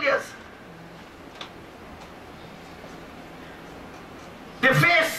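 A man preaches loudly through a microphone in an echoing hall, pausing between phrases.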